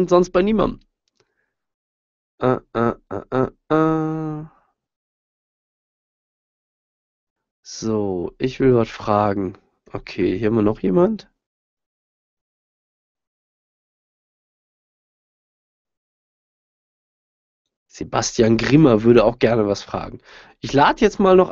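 A man speaks calmly and close into a microphone, in bursts with long pauses.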